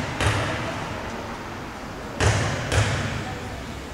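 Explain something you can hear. A basketball bounces on a hard floor in an echoing hall.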